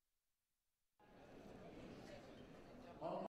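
A large crowd murmurs in an echoing hall.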